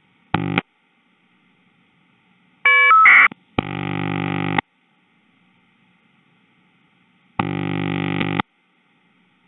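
A telephone ring tone sounds in short bursts.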